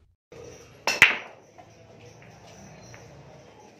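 Pool balls clack against each other.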